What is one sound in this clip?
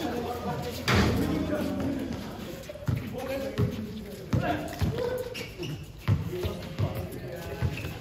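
A basketball bounces on hard concrete outdoors.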